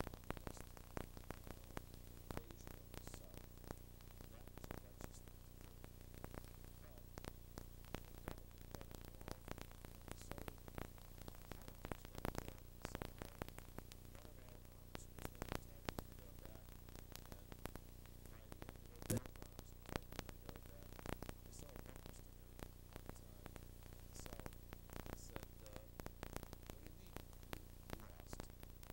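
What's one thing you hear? A middle-aged man speaks calmly and steadily into a nearby microphone.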